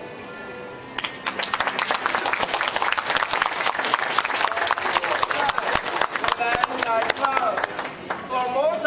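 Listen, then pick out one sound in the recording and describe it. A crowd claps hands quickly and steadily.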